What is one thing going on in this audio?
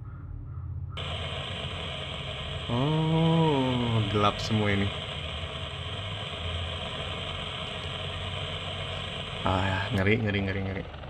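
Television static hisses steadily.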